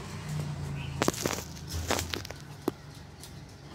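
A glass jar clinks against a hard surface.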